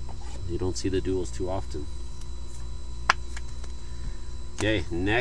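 Cards rustle and slide against each other as they are handled.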